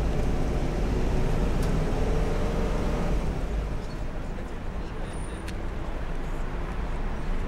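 A bus engine rumbles close by and fades as the bus drives away.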